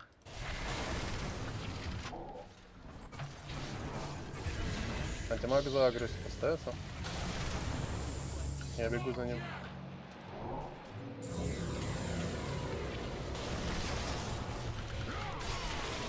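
Game sound effects of fighting and spells play continuously.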